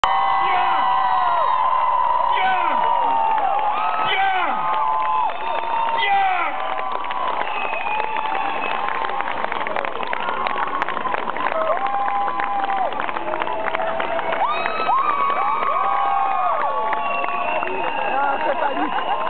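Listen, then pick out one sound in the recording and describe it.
A crowd cheers loudly in a large echoing hall.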